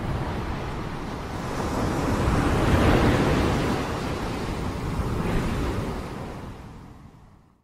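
Wind rustles through palm fronds.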